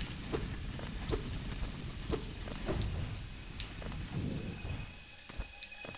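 A blade slashes with sharp swishing hits.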